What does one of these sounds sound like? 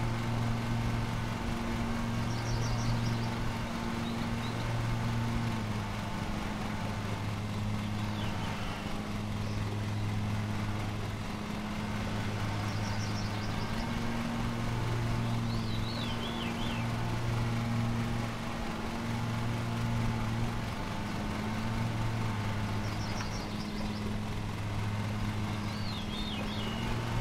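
A lawn mower engine hums steadily.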